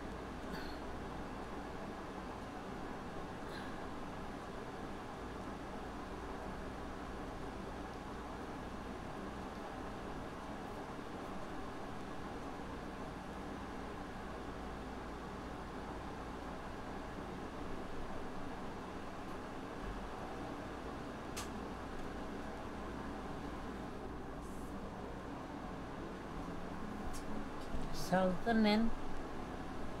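An elderly woman speaks quietly nearby.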